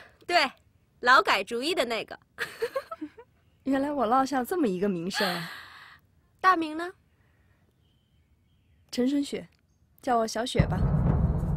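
A young woman speaks softly and warmly.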